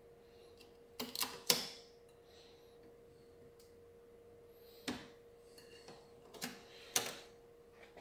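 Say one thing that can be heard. Small plastic connectors click and snap into place.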